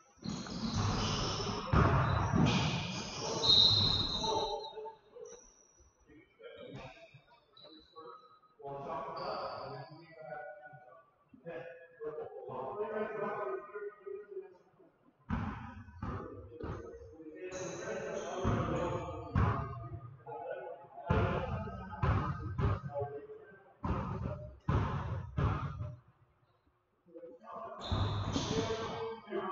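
Players' sneakers squeak and patter on a gym floor in a large echoing hall.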